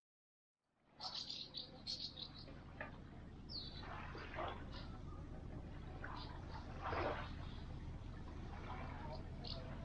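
Small waves lap softly on a sandy shore.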